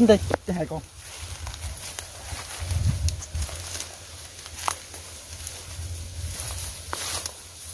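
Dry leaves and twigs crunch and snap underfoot.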